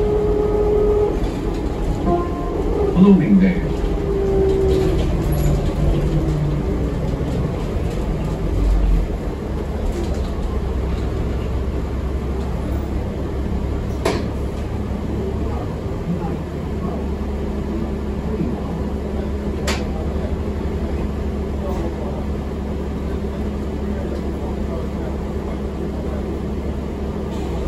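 A bus engine rumbles low and steady as the bus drives.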